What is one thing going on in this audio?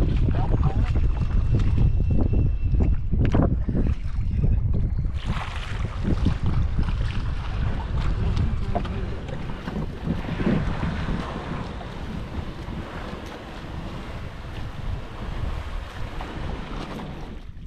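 Shallow water splashes as a man wades and pushes a boat.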